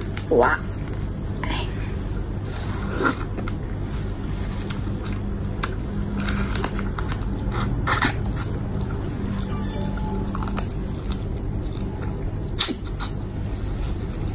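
A woman chews and slurps saucy shrimp close to the microphone.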